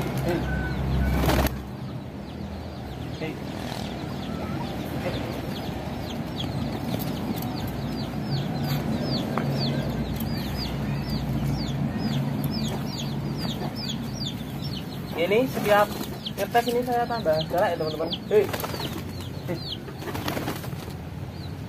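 A pigeon's wings flap loudly as it lands.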